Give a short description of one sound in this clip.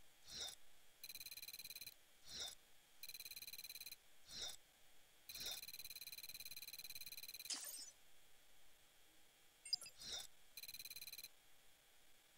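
A game's points counter ticks rapidly as it counts up in short bursts.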